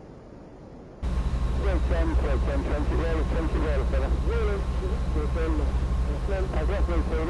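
A ship's engine drones low and steady.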